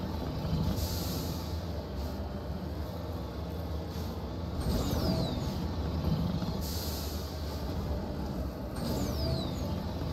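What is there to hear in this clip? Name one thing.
A vehicle's engine rumbles low and steady as it drives over rough ground.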